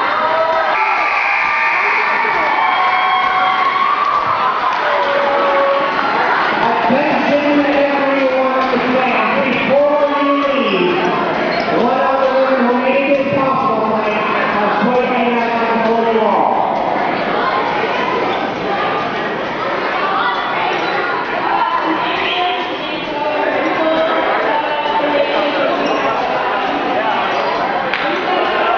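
A crowd of young players and adults cheer and chatter loudly in a large echoing gym.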